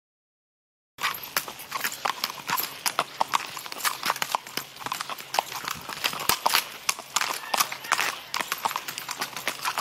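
Horse hooves clop rapidly on pavement.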